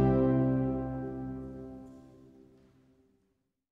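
A pipe organ holds a chord that fades away in a large echoing hall.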